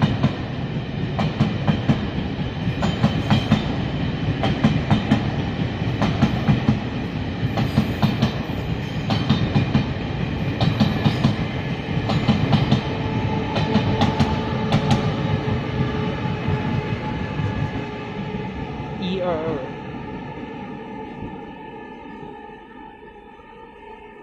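A train rumbles along the tracks, slowing and growing quieter.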